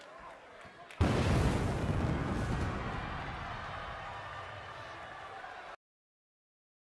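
Fire jets burst with a loud roar.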